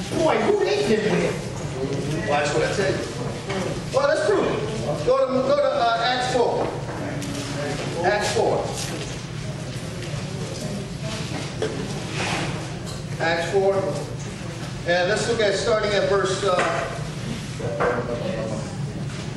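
A man speaks with animation through a microphone.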